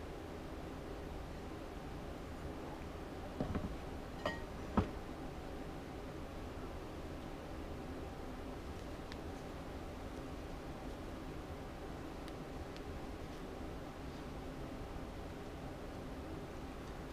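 Cloth rustles softly as hands handle it.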